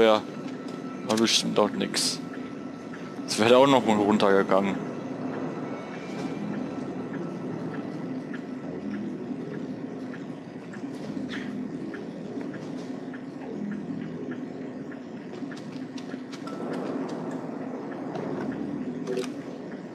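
Soft footsteps tread on a hard floor.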